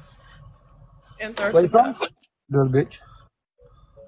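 A young woman talks and laughs through a phone call.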